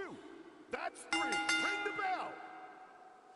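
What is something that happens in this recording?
An electronic countdown chime beeps.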